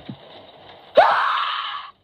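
A loud shrieking burst blares from a tablet speaker.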